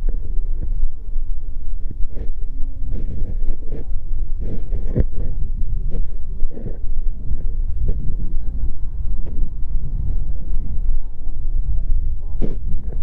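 Wind buffets the microphone outdoors with a low, steady rumble.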